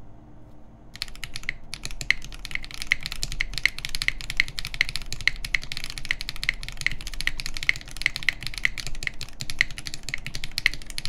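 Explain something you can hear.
Keys on a mechanical keyboard clack rapidly as someone types fast.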